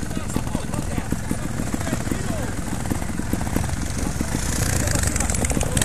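A second motorcycle engine revs nearby.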